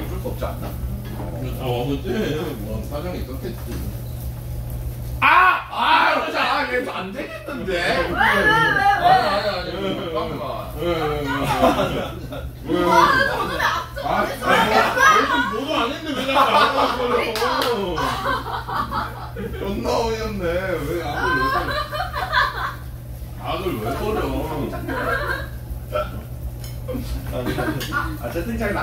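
Several young men and women talk and laugh together nearby.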